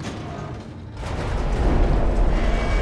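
A metal lift rumbles and grinds as it starts moving.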